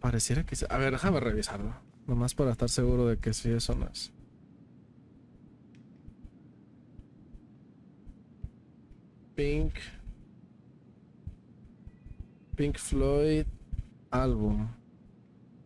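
A young man talks casually and close to a microphone, in bursts with pauses.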